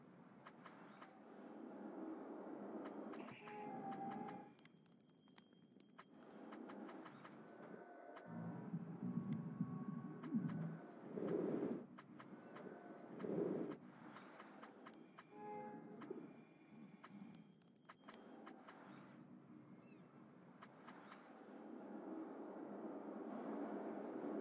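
Short menu clicks tick as a selection moves.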